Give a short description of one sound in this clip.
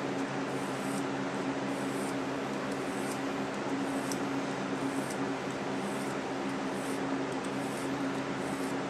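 A thin metal wire scrapes and clicks against a metal bolt.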